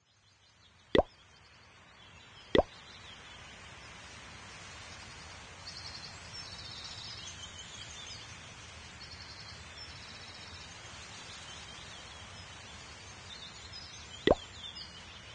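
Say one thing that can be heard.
Short game menu clicks sound now and then.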